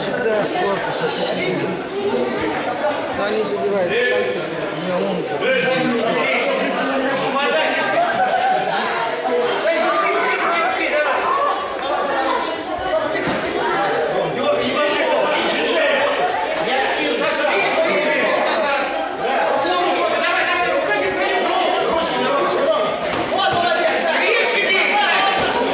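Voices of a crowd of men and children chatter in a large echoing hall.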